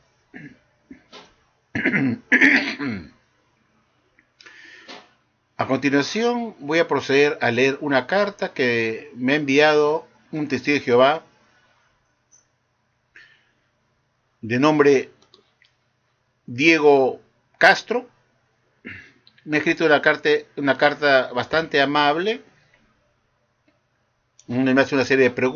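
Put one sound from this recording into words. An older man speaks calmly and close to a microphone, with pauses.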